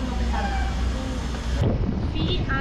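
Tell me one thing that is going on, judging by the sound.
A small child speaks in a high voice close by.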